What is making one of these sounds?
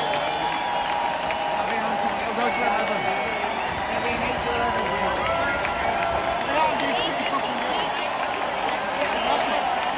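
A large crowd talks and shouts all around.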